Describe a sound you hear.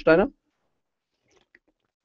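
A man gulps water from a plastic bottle.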